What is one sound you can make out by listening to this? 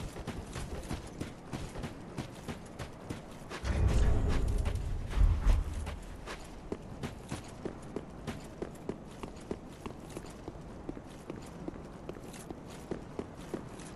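Armoured footsteps thud quickly on stone.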